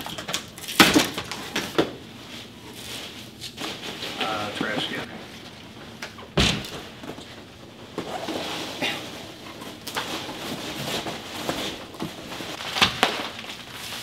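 Cardboard rustles and thumps as a box is handled.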